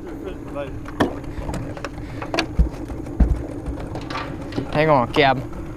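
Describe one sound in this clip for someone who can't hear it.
A fish flaps and thumps on a boat's floor.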